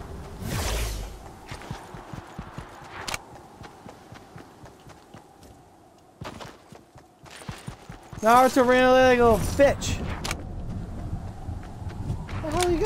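Quick footsteps rustle through grass.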